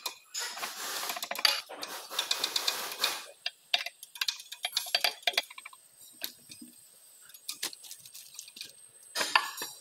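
Metal parts clink and scrape as a gear hub is handled.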